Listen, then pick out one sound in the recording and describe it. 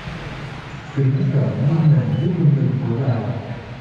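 A young man speaks calmly into a microphone, heard through a loudspeaker in an echoing hall.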